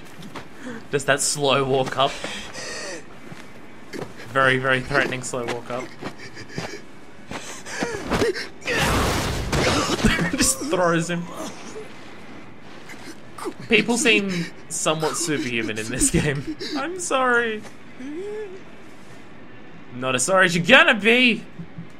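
A man groans and pleads in a strained, pained voice.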